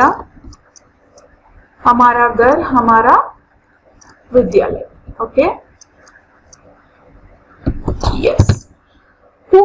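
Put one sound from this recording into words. A young woman speaks calmly into a microphone, explaining in short bursts.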